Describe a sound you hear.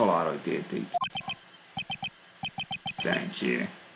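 Short electronic blips tick rapidly in a row.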